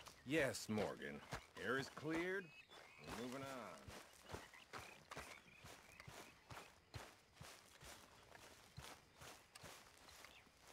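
Footsteps crunch steadily over dry grass.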